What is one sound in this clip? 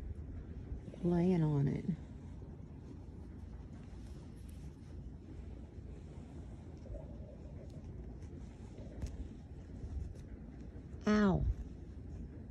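A cat meows briefly.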